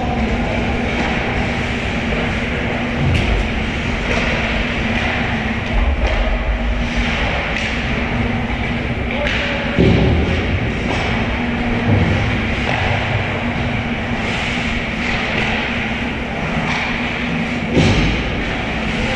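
Skates scrape across the ice throughout a large echoing rink.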